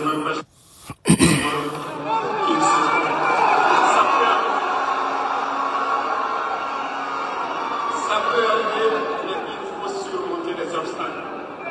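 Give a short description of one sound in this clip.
A large crowd murmurs and cheers in an open arena.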